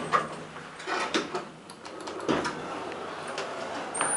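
Elevator doors slide open.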